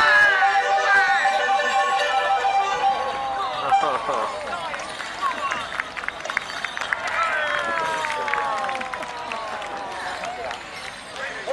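An accordion plays a lively folk tune outdoors.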